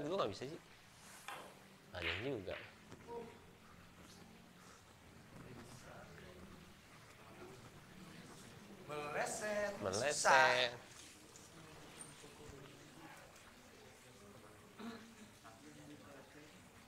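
Pool balls click together on a table.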